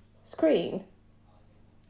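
A young woman speaks briefly over an online call.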